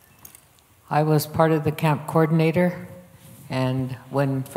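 A woman answers with animation through a microphone.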